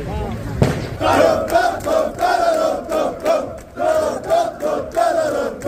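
A crowd of men chants loudly in rhythm outdoors.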